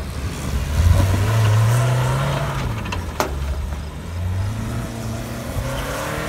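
Tyres crunch and spin on dirt and grass.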